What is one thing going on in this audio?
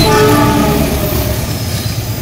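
A diesel-electric locomotive sounds its horn as it passes.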